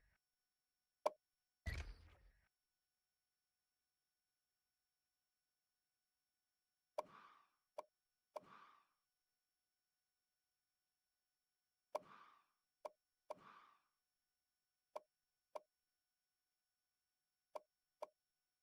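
Game menu sounds tick sharply as selections move.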